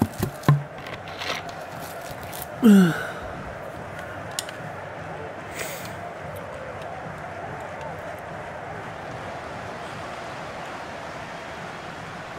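A large stadium crowd roars steadily in the distance.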